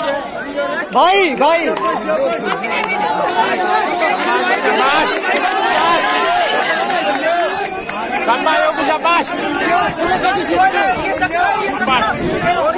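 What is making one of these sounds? A crowd of young men cheers loudly as runners go by.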